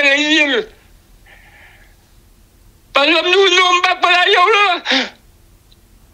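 A middle-aged woman speaks calmly and clearly, close to a microphone.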